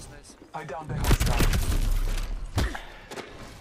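Heavy blows thud.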